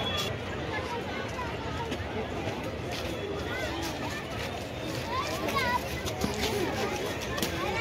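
A crowd of people chatters nearby outdoors.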